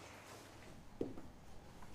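A shoe thuds softly on a floor.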